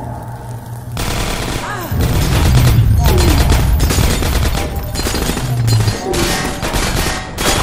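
Glass shatters and crashes repeatedly.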